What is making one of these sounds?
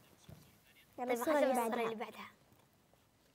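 A young girl speaks brightly through a microphone.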